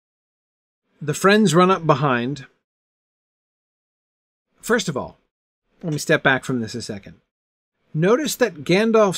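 A middle-aged man speaks with animation into a close microphone, in short bursts with pauses.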